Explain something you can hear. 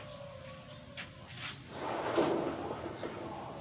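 A corrugated metal roof sheet rattles and clanks as it is pushed up.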